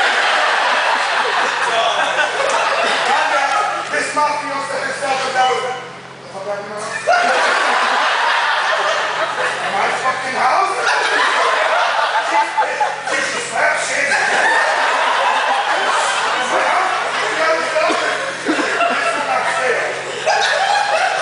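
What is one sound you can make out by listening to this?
A group of men laughs.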